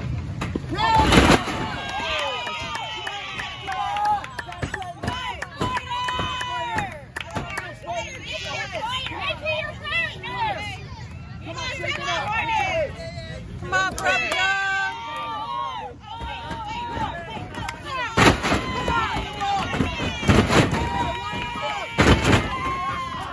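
Wrestlers slam onto a ring mat with loud thuds.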